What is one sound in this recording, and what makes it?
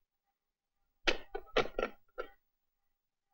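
A telephone handset clatters as it is picked up.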